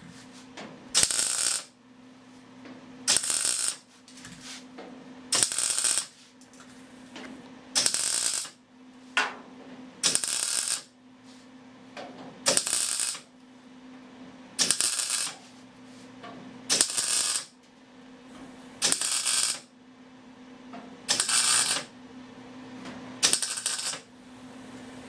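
An arc welder crackles and hisses in short, regular bursts.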